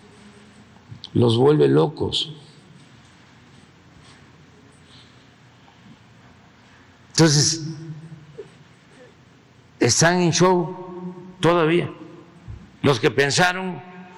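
An elderly man speaks slowly and deliberately into a microphone, with pauses between phrases.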